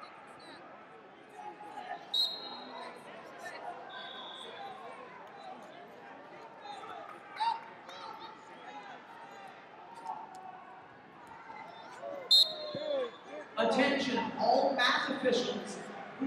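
Spectators chatter and call out in a large echoing hall.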